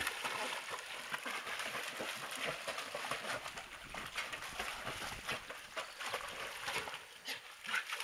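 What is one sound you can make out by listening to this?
A dog splashes as it paddles through water.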